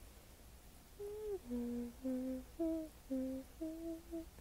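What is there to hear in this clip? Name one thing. A young woman hums a short tune softly close to the microphone.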